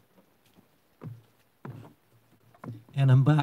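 An elderly man speaks into a microphone.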